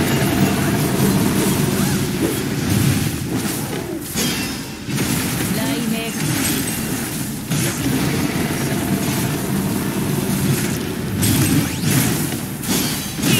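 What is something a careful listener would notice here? Electric blasts crackle and zap in a fast game fight.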